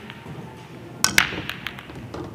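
A cue ball smashes into a rack of pool balls with a sharp crack.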